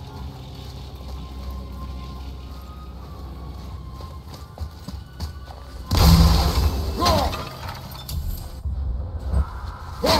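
Heavy footsteps crunch over snow and stone.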